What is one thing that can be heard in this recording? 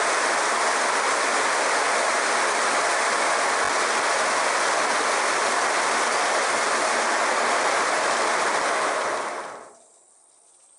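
A machine runs with a steady, loud rushing rattle.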